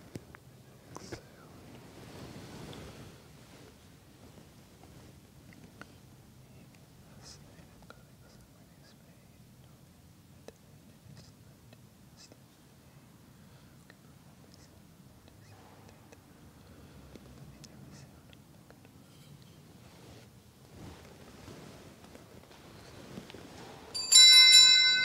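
A man murmurs prayers quietly in an echoing room.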